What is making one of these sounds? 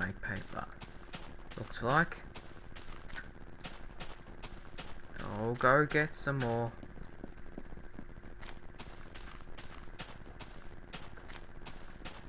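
Footsteps tread steadily over grass and wooden boards.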